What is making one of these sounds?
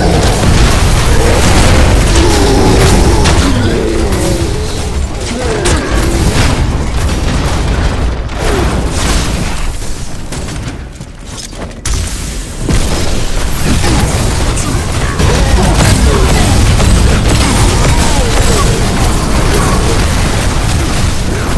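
Weapons clash and blast in a fast fight.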